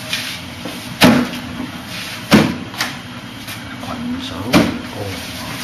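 Hands and forearms strike a wooden dummy with sharp, hollow knocks.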